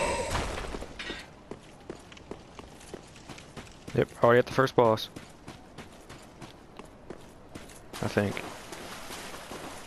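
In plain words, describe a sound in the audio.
Armoured footsteps run over stone.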